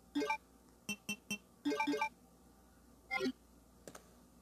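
Short electronic menu beeps sound several times.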